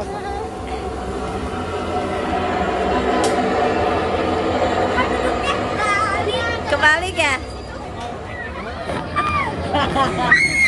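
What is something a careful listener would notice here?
A motion ride machine hums and whirs as it tilts.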